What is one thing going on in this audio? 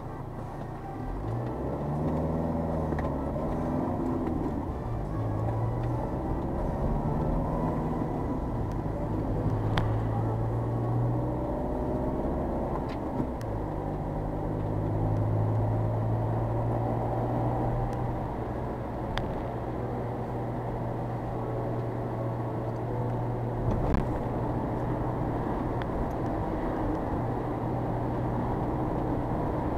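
A car engine hums from inside the car, rising and falling as it changes speed.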